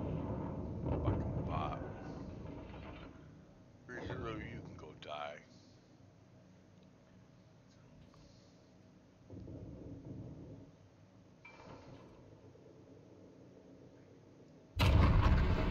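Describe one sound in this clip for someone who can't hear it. Shells explode with deep rumbles.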